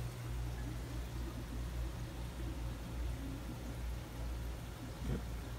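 An aquarium pump hums steadily and quietly.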